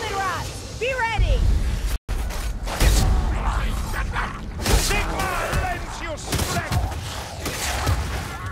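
Heavy blows land with deep thuds.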